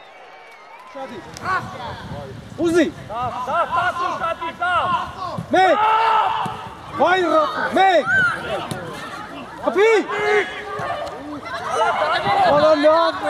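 Children shout excitedly across an outdoor pitch.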